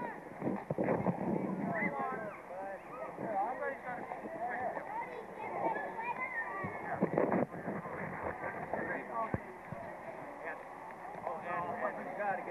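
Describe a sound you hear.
Children and adults chatter and call out outdoors.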